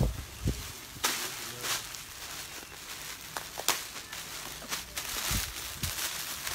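Plastic wrapping crinkles and rustles as it is handled.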